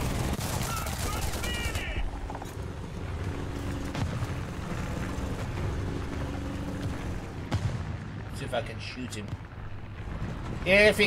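Tank tracks clank and squeak over grass.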